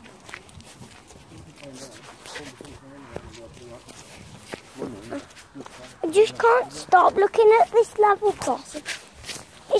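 Footsteps crunch over dry leaves on a path.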